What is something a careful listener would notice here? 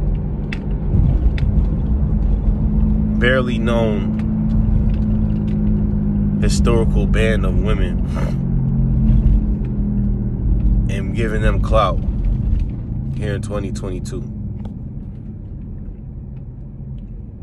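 A car's engine and road noise rumble low and steady from inside the car.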